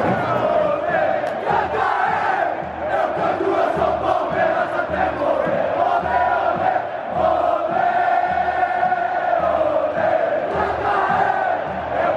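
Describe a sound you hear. A large crowd chants and sings together in rhythm.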